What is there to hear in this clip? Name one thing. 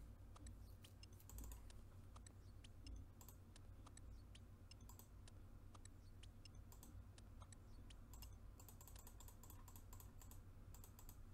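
Short clicks sound again and again as a chest is opened.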